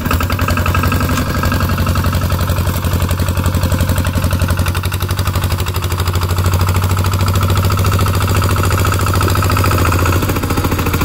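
A single-cylinder diesel walking tractor engine chugs under load.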